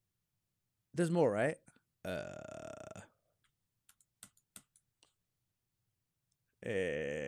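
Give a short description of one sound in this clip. A young person speaks with animation through a microphone.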